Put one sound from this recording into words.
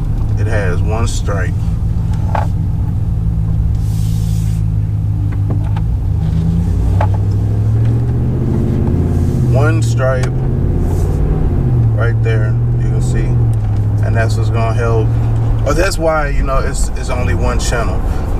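A man talks calmly, close by, in short bursts.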